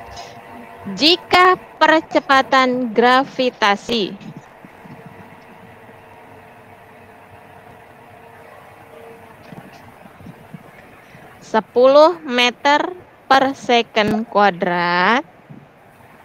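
A child speaks loudly and with animation over an online call.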